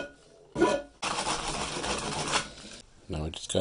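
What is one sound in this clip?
A file rasps against metal.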